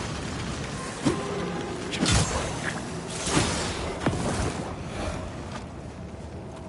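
A sword swings and strikes enemies with sharp whooshes and thuds.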